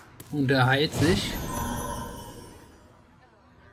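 A short magical chime and whoosh ring out in a card game.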